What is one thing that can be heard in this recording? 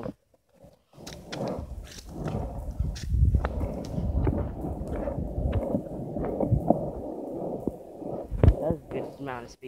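Skateboard wheels roll and rumble over rough asphalt.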